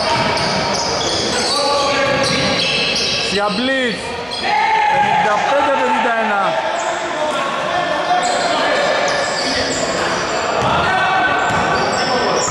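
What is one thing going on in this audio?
Young men shout to each other in an echoing hall.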